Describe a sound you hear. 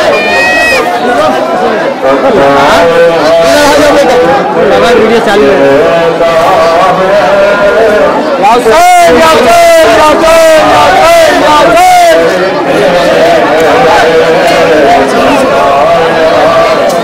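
A crowd of men and women chant and wail loudly nearby.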